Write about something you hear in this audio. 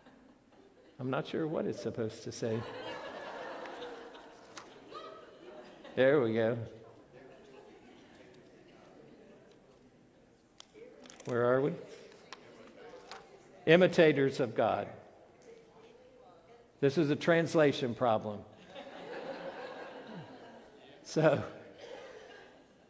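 An older man preaches with animation through a microphone in a large echoing hall, pausing between phrases.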